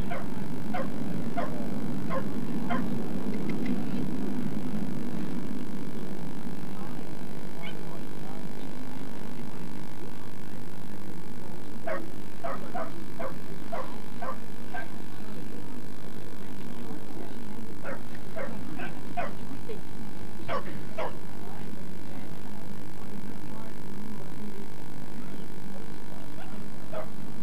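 A crowd murmurs faintly outdoors.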